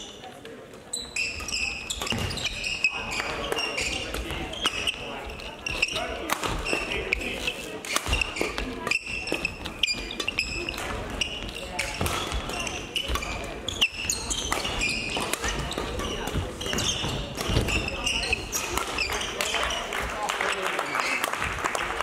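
Feet thump and patter across a court.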